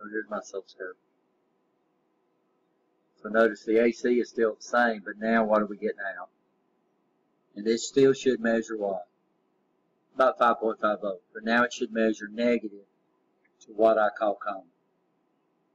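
A man explains calmly, close to a microphone.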